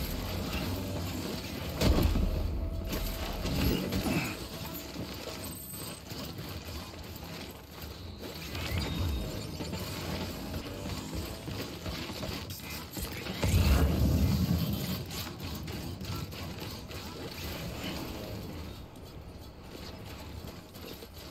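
Heavy footsteps crunch on gravel.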